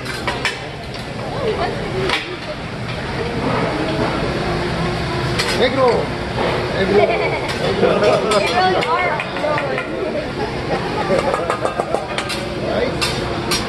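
Metal utensils clink and scrape on a griddle.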